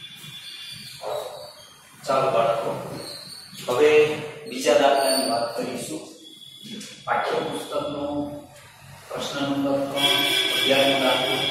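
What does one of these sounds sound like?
A man lectures with animation through a clip-on microphone.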